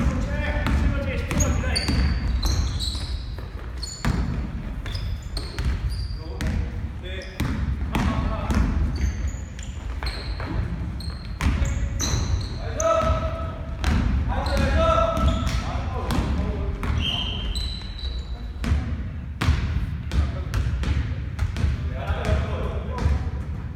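A basketball bounces with thuds on the floor.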